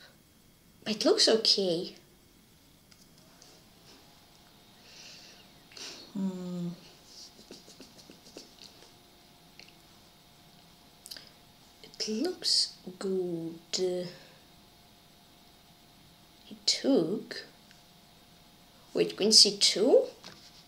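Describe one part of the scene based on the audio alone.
A young boy speaks calmly into a nearby microphone, in short bursts.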